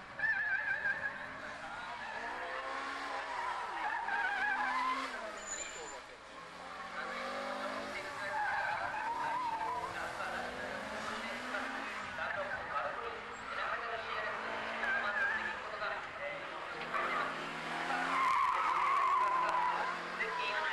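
A car engine revs hard and rises and falls in pitch.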